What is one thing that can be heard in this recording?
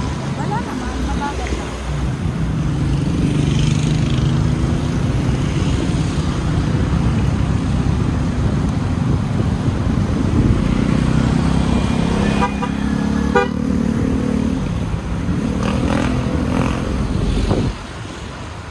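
A vehicle engine hums steadily from inside a moving car.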